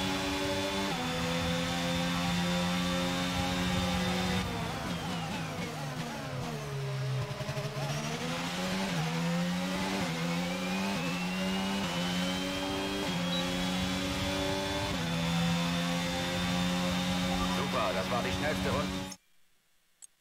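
A racing car engine screams at high revs, dropping in pitch as the car brakes and then climbing again through the gears.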